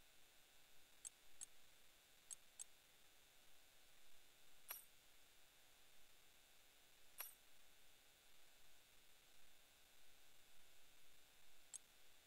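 Short soft menu clicks tick now and then.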